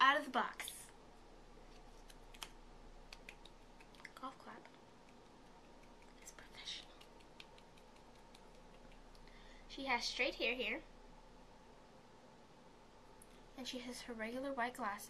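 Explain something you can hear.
A girl speaks cheerfully close by, in short bursts.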